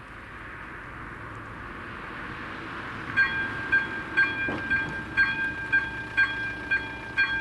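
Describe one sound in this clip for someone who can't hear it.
A car approaches on the road and slows to a stop.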